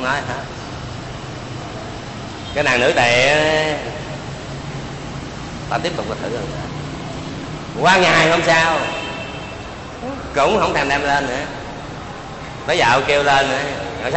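An elderly man speaks slowly into a microphone, in short phrases with pauses.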